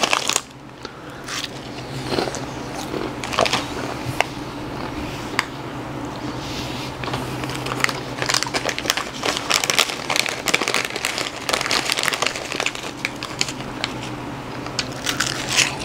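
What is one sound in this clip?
A man crunches on chips.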